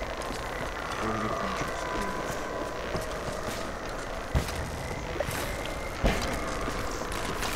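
Electricity crackles and buzzes over water.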